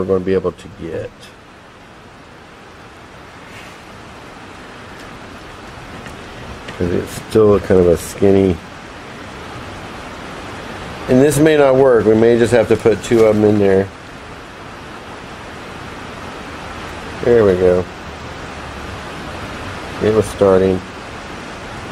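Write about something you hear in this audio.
A man talks calmly and close by in short bursts.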